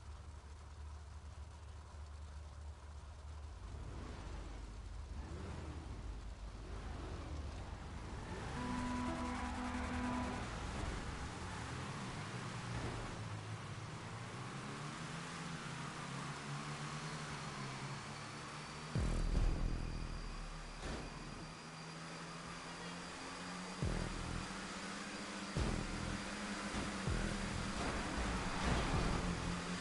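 Many race car engines roar together, rising and falling in pitch.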